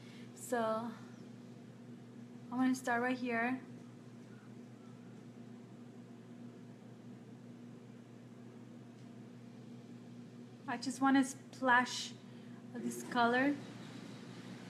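A woman speaks calmly and close by, in short bursts.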